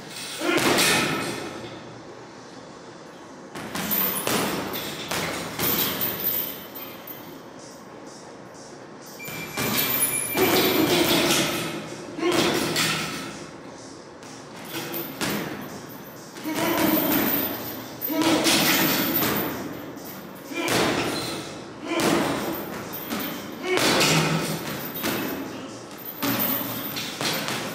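Boxing gloves thump against a heavy punching bag in bursts, echoing in a large room.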